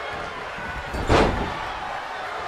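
A body slams heavily onto the ring mat.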